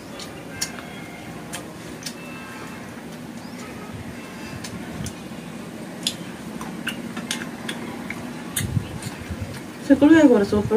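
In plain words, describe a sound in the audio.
Fingers squish and mix food on a plate.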